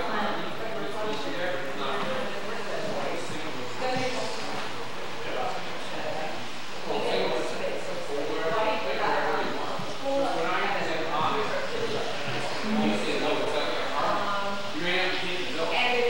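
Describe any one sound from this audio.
A woman talks calmly to children nearby.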